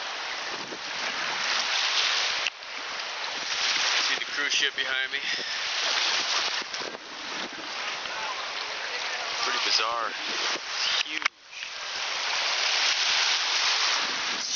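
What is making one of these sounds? Small waves wash onto a shore.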